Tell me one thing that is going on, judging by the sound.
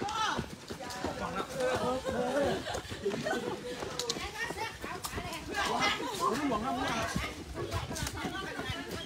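Several men and women talk and chant together as they jog, close by.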